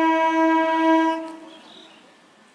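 A train horn blows loudly and steadily, then stops.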